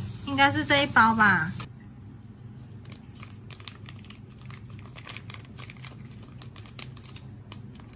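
A foil packet crinkles as it is squeezed and torn open.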